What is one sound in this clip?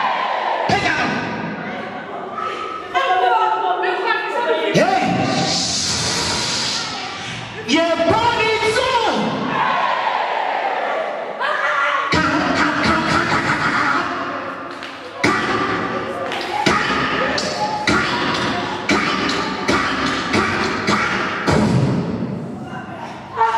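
A woman shouts with animation into a microphone over loudspeakers.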